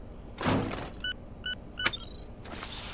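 A keypad beeps as buttons are pressed.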